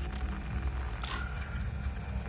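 A menu selection gives a short click.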